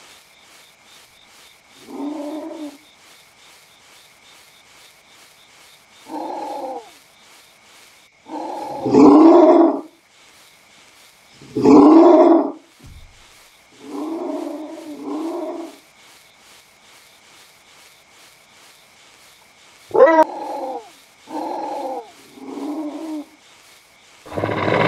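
A wolf's paws patter on grass as it runs.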